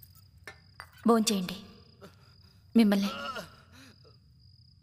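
A woman speaks softly.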